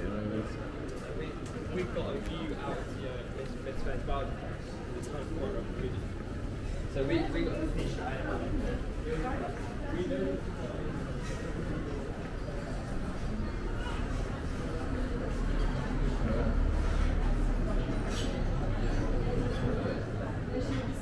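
Footsteps tap on a paved walkway.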